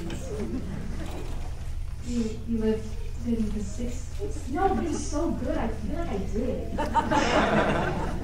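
A young woman speaks into a microphone over loudspeakers.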